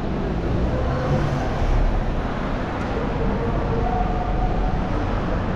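A car drives slowly past.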